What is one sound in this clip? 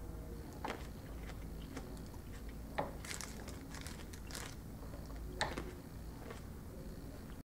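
A plastic bag crinkles.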